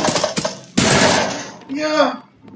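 A grenade explodes nearby.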